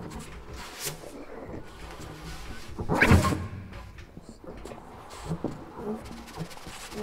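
A jazz band plays together.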